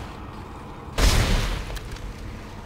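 A heavy gun fires once with a deep, rumbling boom.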